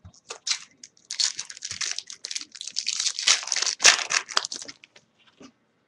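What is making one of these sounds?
A card pack wrapper crinkles in someone's hands.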